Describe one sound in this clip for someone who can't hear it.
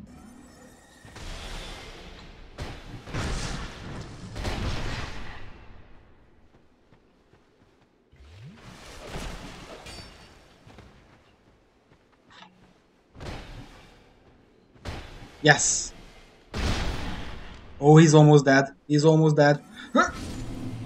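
Swords clash and strike with heavy metallic blows.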